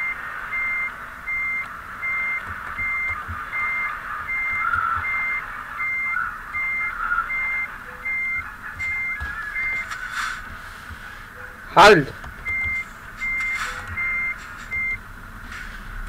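A truck's reversing alarm beeps at a steady, even pace.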